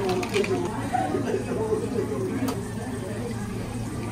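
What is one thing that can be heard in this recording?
Espresso pours and splashes over ice.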